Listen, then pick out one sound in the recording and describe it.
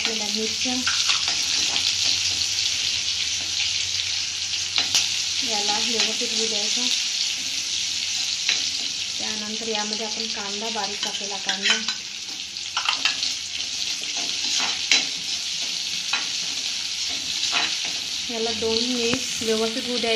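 A metal spatula scrapes and taps against a wok.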